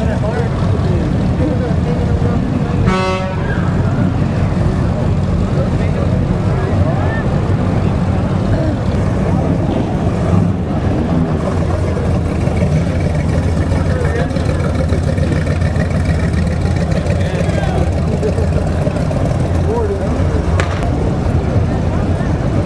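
A crowd of onlookers chatters along the street outdoors.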